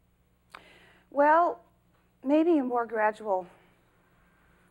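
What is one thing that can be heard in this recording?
A middle-aged woman speaks with a questioning, drawn-out tone.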